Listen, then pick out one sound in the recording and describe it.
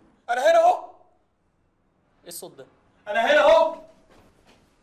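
A man speaks sharply in short bursts, close by.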